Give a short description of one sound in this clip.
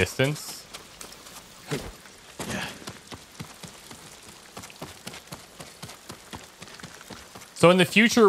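Footsteps run quickly over grass and stone steps.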